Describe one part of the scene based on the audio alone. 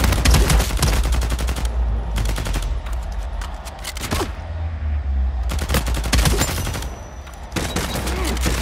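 A submachine gun fires in rapid, loud bursts.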